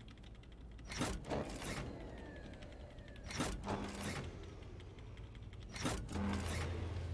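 A heavy metal lever clanks as it is pulled.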